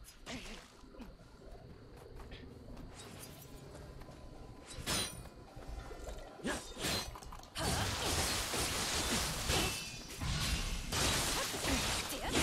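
Swords clash and slash in quick strikes.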